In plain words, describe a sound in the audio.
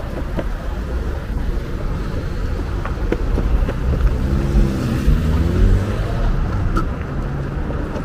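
Skateboard wheels rumble steadily over pavement.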